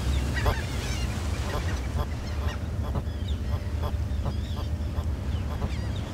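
Waves crash and wash against rocks nearby.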